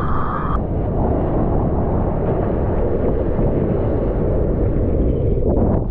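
A wave breaks with a rushing roar.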